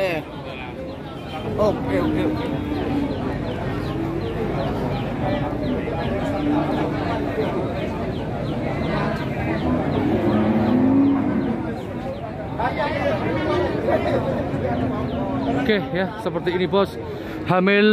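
A crowd of people talks and murmurs in the background.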